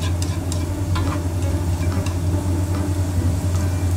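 Chopsticks scrape and tap against a frying pan.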